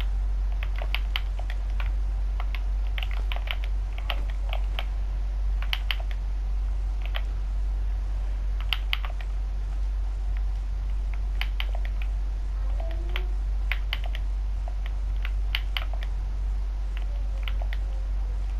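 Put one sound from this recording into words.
Blocks are placed and broken with quick clicking taps.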